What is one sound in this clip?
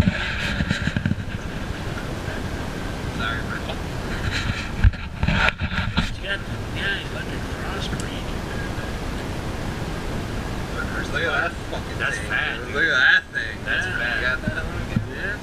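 A man talks with excitement close by.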